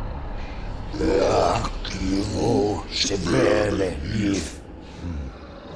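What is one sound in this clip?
A man speaks slowly and gravely over an online call.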